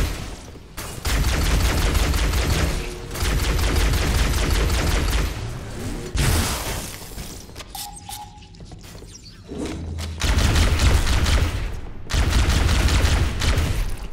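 A game's energy weapon fires in rapid bursts.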